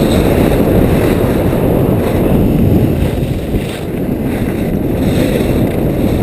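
Wind rushes past a skier racing downhill at speed.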